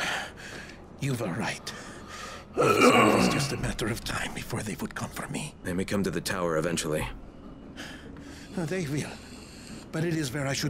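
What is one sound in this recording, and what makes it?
An older man speaks calmly and wearily.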